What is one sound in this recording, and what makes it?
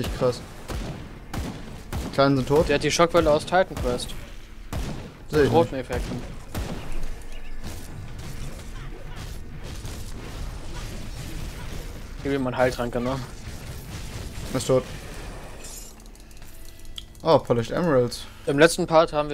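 Magic blasts crackle and boom in quick bursts.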